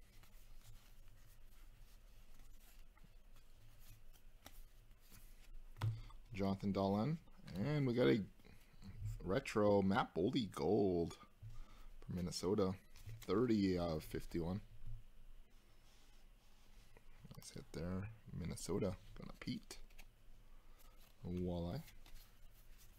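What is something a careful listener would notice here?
Trading cards slide and rustle against each other as hands shuffle through them.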